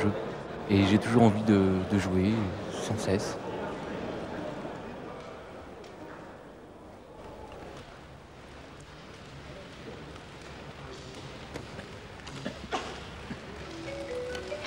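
A crowd murmurs quietly in a large echoing hall.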